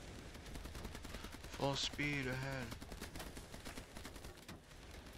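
Automatic guns fire in rapid bursts.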